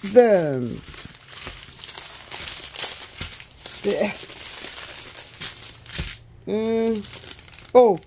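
Small plastic packets rustle and crinkle as they are set down.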